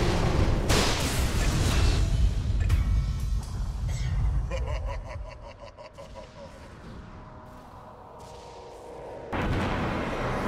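Spell effects crackle and burst in a fantasy battle game.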